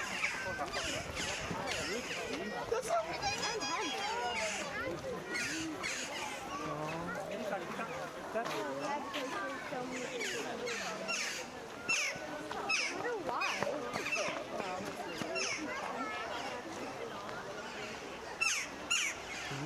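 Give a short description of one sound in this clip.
A crowd of adults and children chatters outdoors.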